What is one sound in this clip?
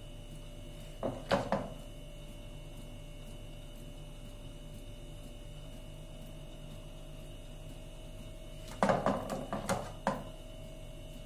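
A metal ladle clinks and scrapes against a metal pot.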